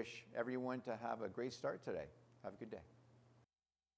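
A middle-aged man speaks calmly into a microphone, close up.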